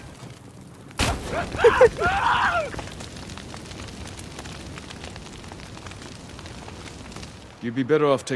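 Flames crackle steadily.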